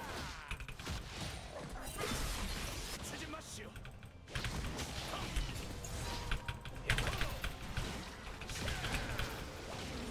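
Video game spell effects whoosh, crackle and burst in quick bursts.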